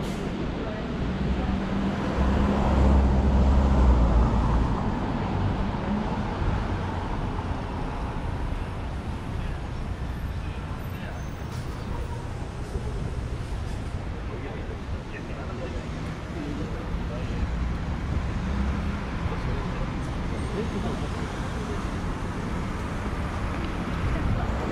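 City traffic rumbles steadily in the distance.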